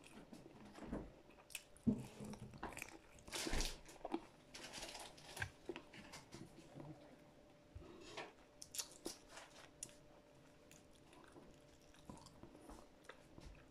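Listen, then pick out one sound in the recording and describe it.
A woman chews food noisily close by.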